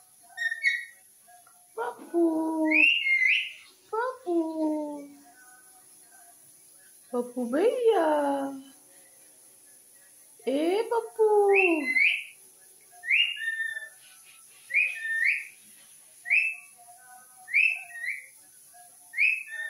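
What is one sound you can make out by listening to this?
A parrot screeches in short, shrill squawks again and again, close by.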